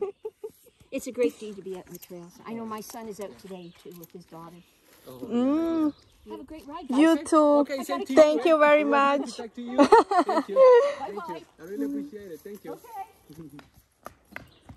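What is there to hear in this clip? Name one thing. A young girl talks excitedly nearby.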